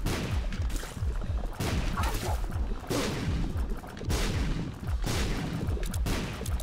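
Game music with a pounding beat plays throughout.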